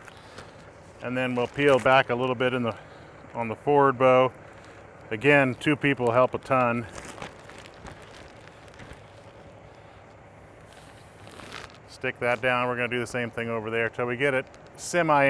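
A man speaks calmly into a clip-on microphone, close by.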